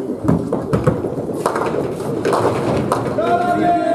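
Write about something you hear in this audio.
Another heavy ball thuds onto a lane and rolls away.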